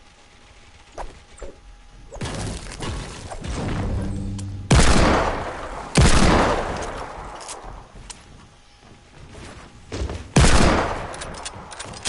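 Wooden walls and ramps snap into place with loud clattering thuds.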